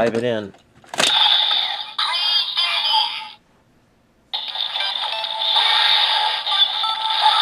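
A toy plays loud electronic music and sound effects.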